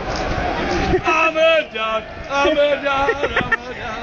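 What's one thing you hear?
A middle-aged man shouts and chants loudly close by.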